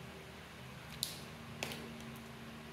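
A pen cap clicks shut and open.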